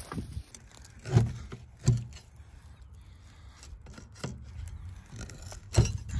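A metal pry bar scrapes and knocks against old wood and brick.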